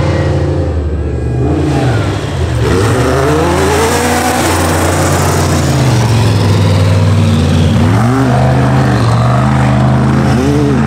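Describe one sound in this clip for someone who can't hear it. Off-road engines roar and rev loudly as vehicles race.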